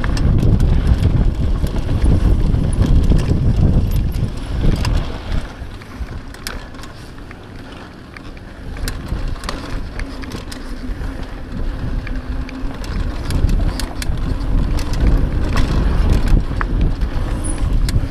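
Bicycle tyres crunch and rattle over a rough dirt trail.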